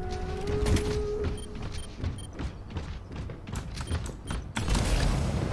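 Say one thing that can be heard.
Heavy metal footsteps thump in a steady rhythm.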